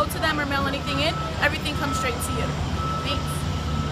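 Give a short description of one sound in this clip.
A young woman speaks up close to a microphone.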